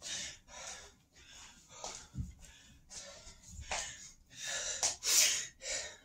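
A man's footsteps thud softly on a hard floor.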